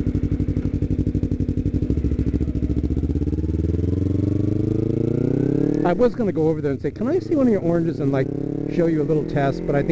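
A motorcycle engine throbs and rises in pitch as it speeds up.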